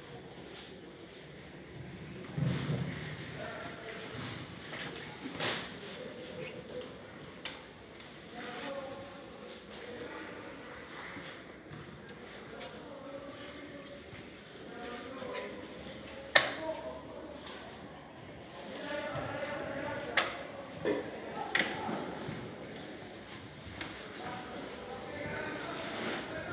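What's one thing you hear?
Children talk among themselves in a room.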